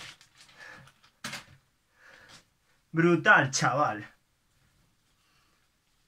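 Fabric rustles as a shirt is unfolded.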